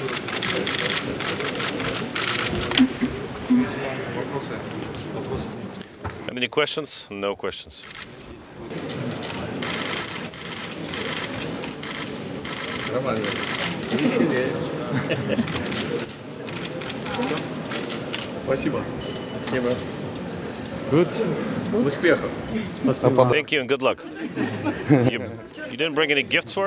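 A man talks calmly nearby in a large echoing hall.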